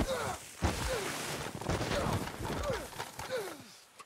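A body tumbles and thuds onto snow.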